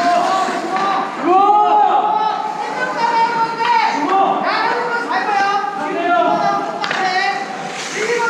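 Several men talk and shout with animation nearby in a large echoing rink.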